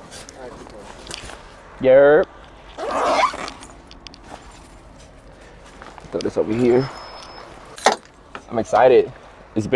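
A bag rustles and thumps as a man handles it.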